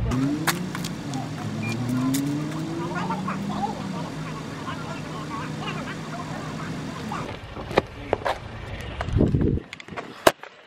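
A car engine idles and revs nearby.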